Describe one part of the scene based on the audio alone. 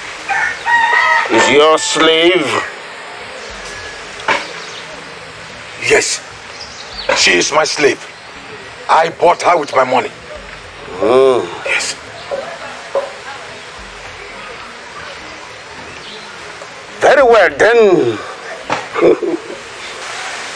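A second man speaks calmly nearby.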